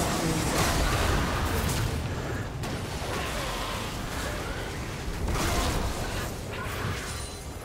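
Magic blasts and hits burst and crackle in a fast fight.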